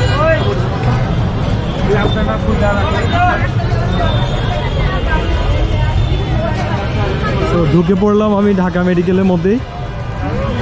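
A crowd of men talk at once outdoors.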